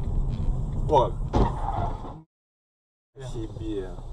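Two cars crash together with a sudden bang.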